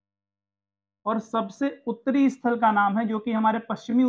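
A young man speaks with animation close to a microphone.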